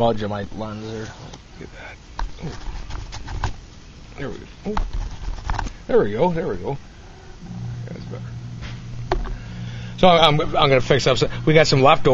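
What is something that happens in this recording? A middle-aged man talks close to the microphone, in a casual, unhurried way.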